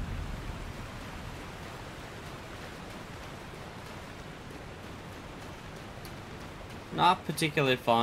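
Water splashes steadily underfoot.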